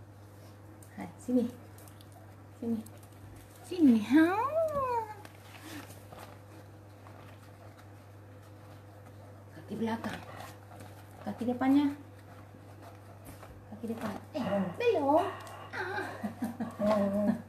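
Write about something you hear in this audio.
A dog whines and yelps in high, wavering cries.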